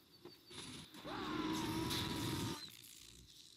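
A sword swishes through the air.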